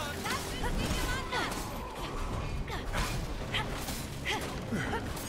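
Monsters screech and snarl during a close fight.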